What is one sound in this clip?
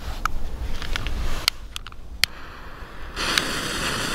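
A lighter clicks.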